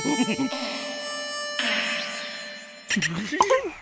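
A cartoon creature chuckles slyly in a squeaky voice.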